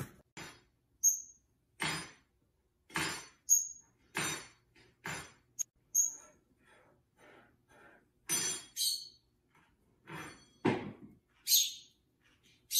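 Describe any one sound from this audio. A small bird taps a spoon against a countertop.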